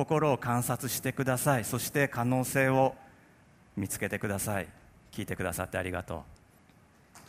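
A man speaks calmly through a headset microphone in a large hall.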